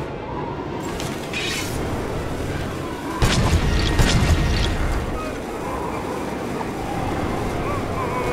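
Wind howls steadily through a snowstorm.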